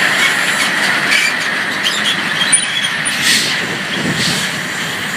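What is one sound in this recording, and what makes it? Truck tyres roll over railway tracks with knocks.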